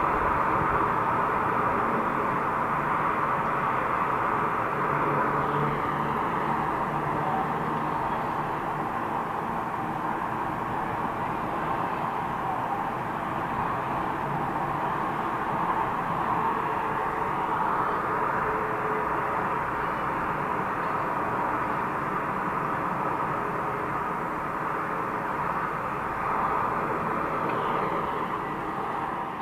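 Steady traffic rushes past on a distant highway.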